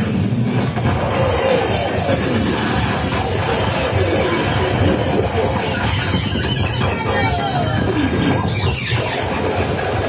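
Electronic tones glide up and down in pitch.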